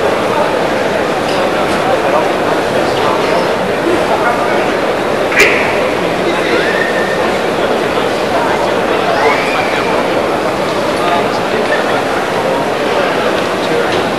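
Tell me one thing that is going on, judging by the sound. A large crowd murmurs and chatters steadily in a big echoing hall.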